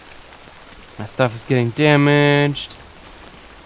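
A young man speaks loudly and drawn out into a close microphone.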